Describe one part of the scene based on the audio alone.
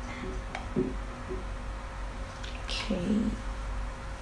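Liquid wax pours into a plastic jug.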